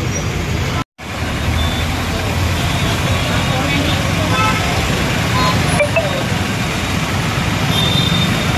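Several men talk with one another outdoors, close by.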